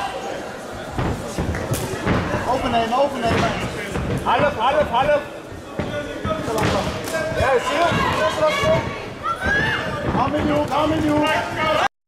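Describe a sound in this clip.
Punches and kicks thud against bodies and gloves.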